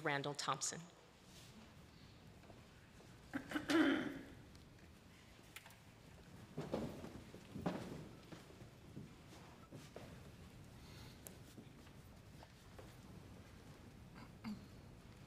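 An audience shifts and rustles quietly in their seats.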